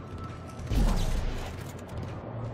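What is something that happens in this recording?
A weapon fires with a sharp, loud blast.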